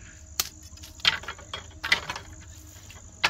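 Bamboo splits and cracks.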